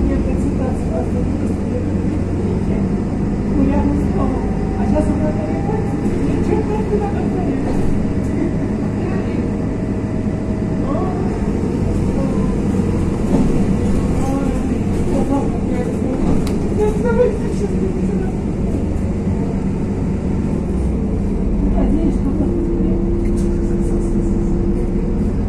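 A vehicle engine rumbles steadily from inside a moving car.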